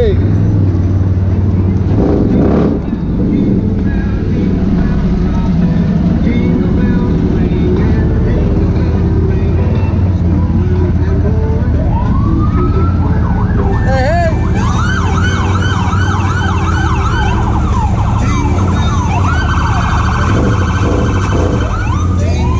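An off-road vehicle's engine rumbles steadily close by.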